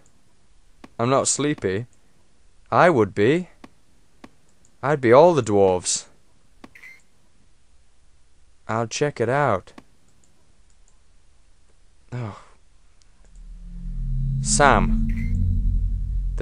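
A young man talks with animation close to a headset microphone.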